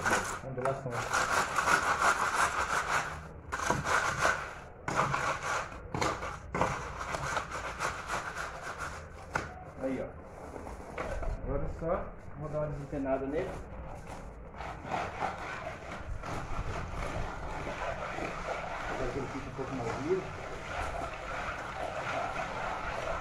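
A board scrapes across wet concrete.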